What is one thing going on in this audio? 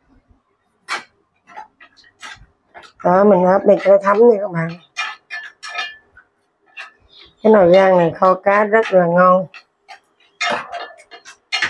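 Chopsticks tap and scrape against a metal pot.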